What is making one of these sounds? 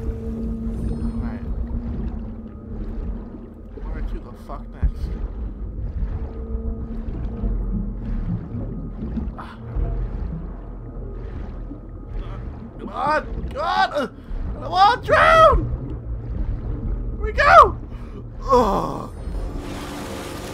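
Water rumbles low and muffled underwater.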